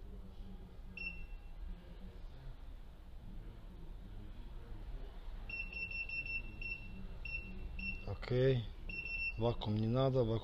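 A machine's keypad gives short electronic beeps as its buttons are pressed.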